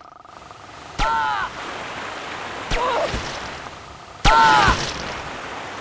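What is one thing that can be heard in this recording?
Short electronic chirps sound now and then.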